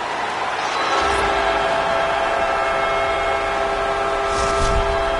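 A goal horn blares loudly.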